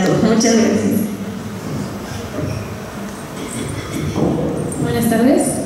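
A man speaks calmly into a microphone, echoing in a large hall.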